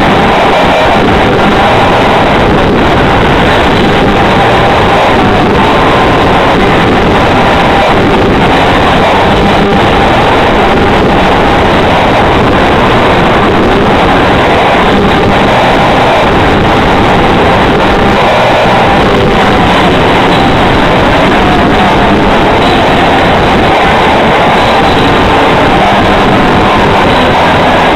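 An electric guitar plays loud and distorted.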